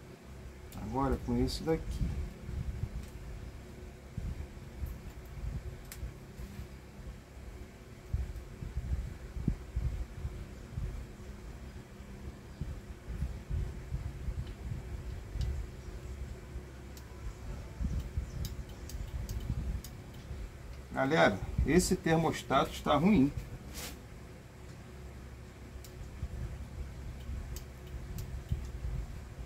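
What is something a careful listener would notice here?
Small metal parts click and tap softly.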